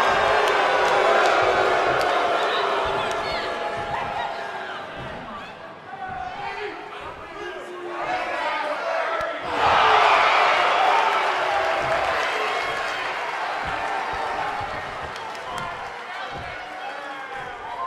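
A large crowd cheers and roars loudly in an echoing arena, swelling up at times.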